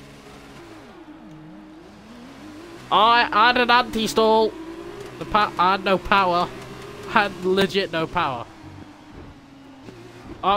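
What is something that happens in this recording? A racing car engine revs up and roars as the car speeds away.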